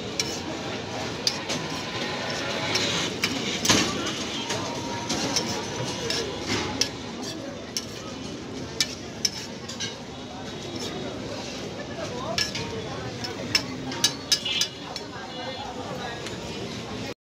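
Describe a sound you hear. Food sizzles on a hot griddle.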